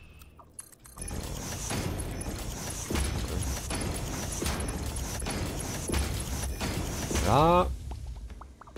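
A futuristic building tool hums and crackles with electronic pulses.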